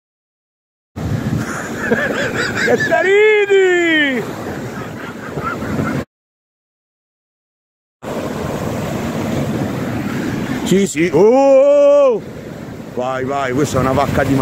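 Waves break and wash up on a shore.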